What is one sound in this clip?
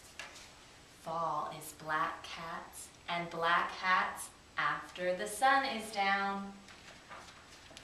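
A woman reads aloud with animation, close by.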